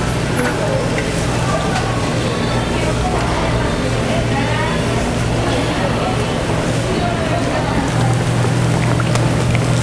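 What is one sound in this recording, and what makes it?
Metal tongs click and scrape against a hot griddle.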